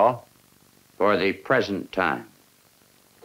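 An older man answers in a firm, gruff voice.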